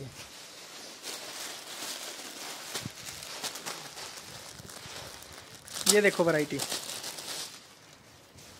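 Plastic packaging crinkles and rustles as it is handled.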